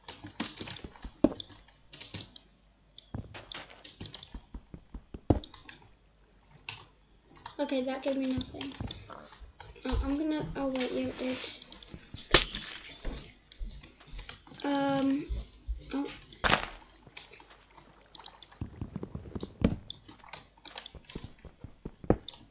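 Quick tapping and crunching sounds repeat as blocks are dug out and placed.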